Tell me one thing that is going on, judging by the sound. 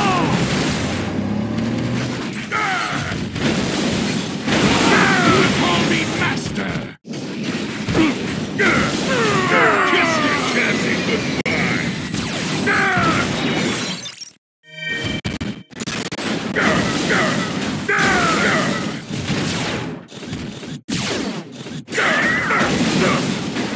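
Robots clash with metallic impacts and blasts.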